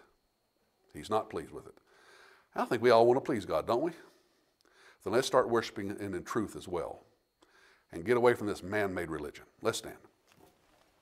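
A middle-aged man speaks with emphasis in short bursts, heard through a microphone in an echoing room.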